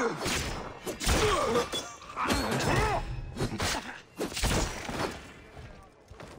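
Blades strike and slash in a close fight.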